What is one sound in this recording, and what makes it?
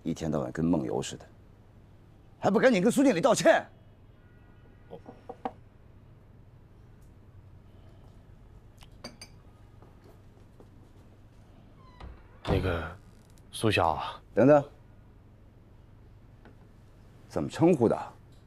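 An older man speaks with surprise, then sternly, close by.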